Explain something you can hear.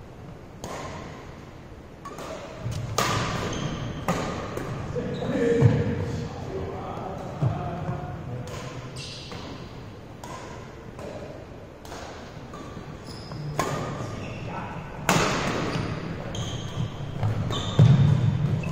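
Badminton rackets hit a shuttlecock with sharp snaps in an echoing hall.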